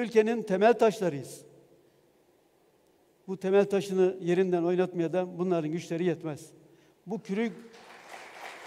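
A middle-aged man speaks firmly through a microphone in a large hall.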